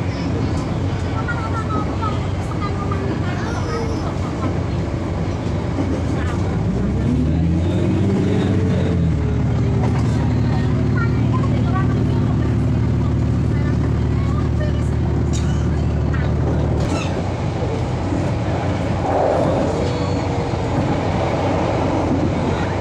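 Steel wheels rumble and clack on the rails under a moving train carriage.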